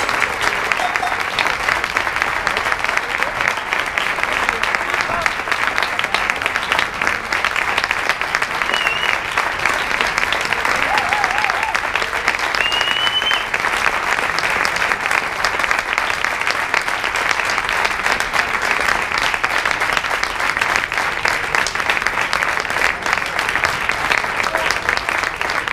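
Many people clap their hands in loud, steady applause.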